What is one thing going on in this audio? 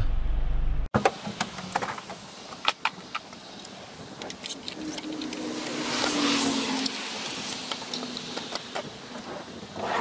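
Metal clatters and knocks outdoors.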